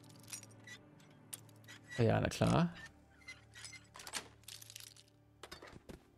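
A metal pick scrapes and clicks inside a lock.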